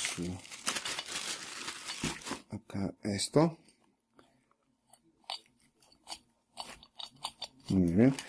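Plastic bubble wrap crinkles and rustles as hands handle it.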